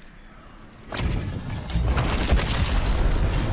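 Stone bursts apart with a deep rumbling blast.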